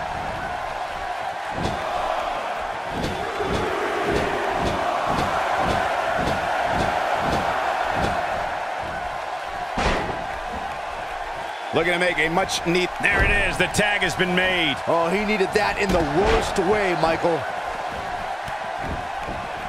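A large crowd cheers and murmurs steadily in a big echoing arena.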